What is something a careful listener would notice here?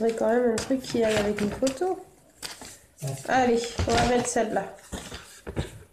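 Paper pages flip and rustle.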